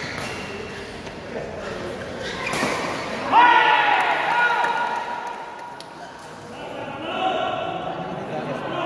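A crowd murmurs and cheers in a large echoing hall.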